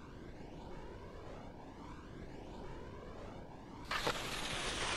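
Wind rushes past a ski jumper in flight.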